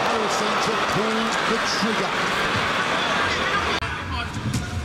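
A large crowd roars and cheers in a big echoing hall.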